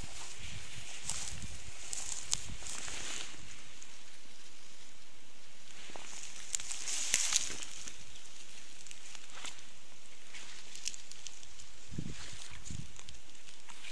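Footsteps crunch on dry stalks.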